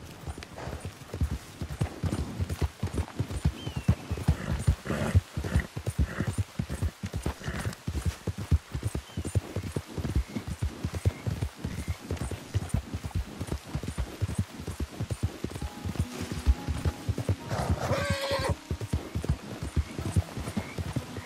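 Horse hooves thud rapidly on a dirt track in a steady gallop.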